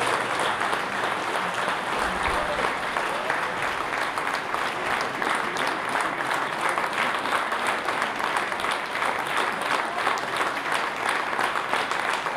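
An audience applauds steadily in an echoing hall.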